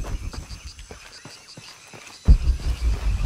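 Footsteps crunch on a forest floor.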